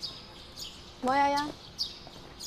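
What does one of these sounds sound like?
A young woman calls out loudly nearby.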